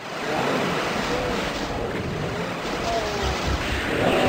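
Monsters growl and roar nearby.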